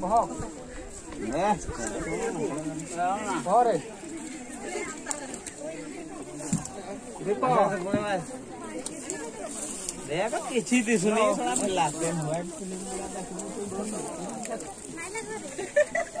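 Young men talk outdoors nearby.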